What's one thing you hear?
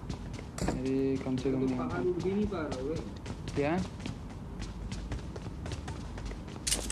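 Quick footsteps run across hard ground.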